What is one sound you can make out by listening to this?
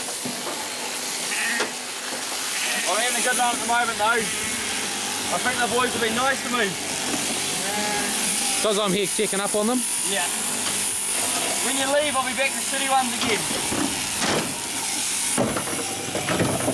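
Electric sheep shears buzz steadily.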